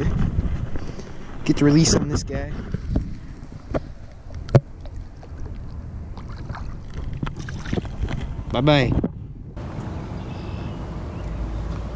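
Wind rumbles across an open lake.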